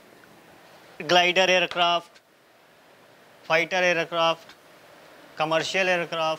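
A young man speaks clearly in short phrases, with pauses between them.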